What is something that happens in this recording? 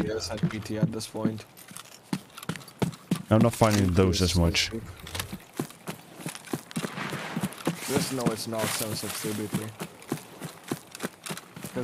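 Footsteps swish through tall grass at a steady walking pace.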